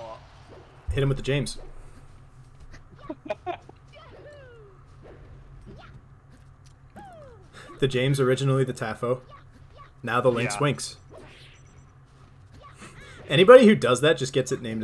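Fighting game sound effects swoosh and clash in quick bursts.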